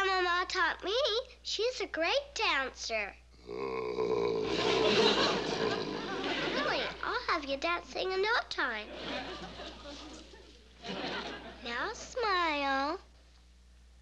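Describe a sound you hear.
A young girl speaks with wonder, close by.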